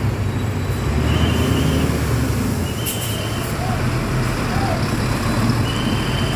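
A bus engine idles with a low, steady rumble close by.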